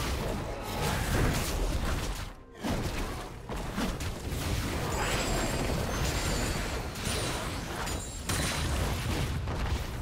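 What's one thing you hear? Blows and magical blasts clash in a video game fight.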